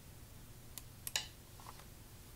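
A stone clicks onto a game board.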